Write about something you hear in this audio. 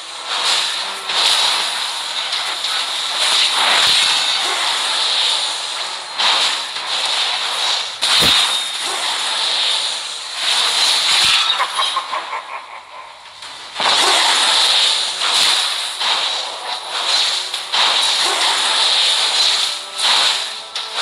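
Video game battle effects whoosh, zap and clash in quick bursts.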